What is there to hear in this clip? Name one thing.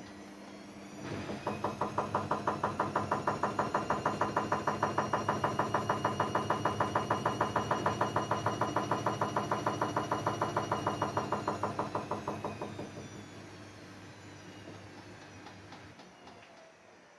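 A washing machine drum rumbles and thumps rhythmically as it spins faster, then winds down.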